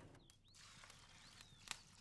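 Water pours into a pot of rice.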